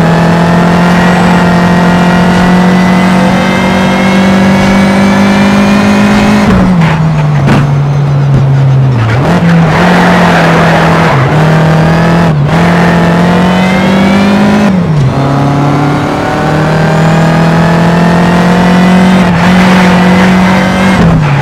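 A racing car engine roars at high revs, climbing in pitch and dropping sharply with each gear change.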